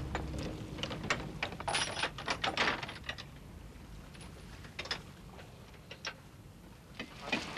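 Metal chains clank against a winch frame.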